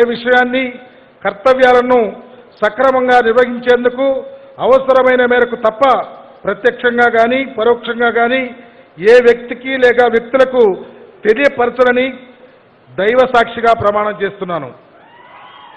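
A man speaks loudly and steadily into a microphone, heard through loudspeakers.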